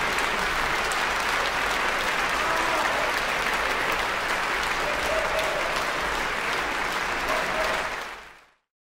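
A large audience applauds steadily in a big echoing hall, then fades out.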